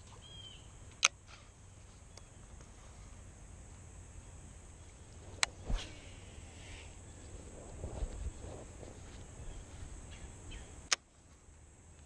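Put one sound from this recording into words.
A fishing reel clicks sharply a few times.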